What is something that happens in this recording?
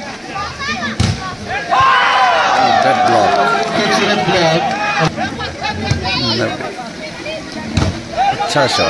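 A volleyball is struck with sharp thumps by hands.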